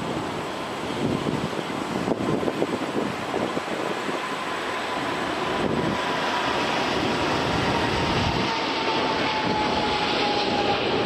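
Jet engines whine with a high tone that slowly falls.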